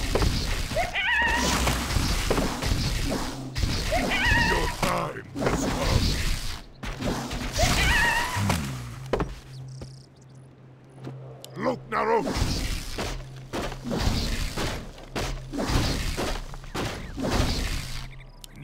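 Weapons clash and thud in a fierce battle.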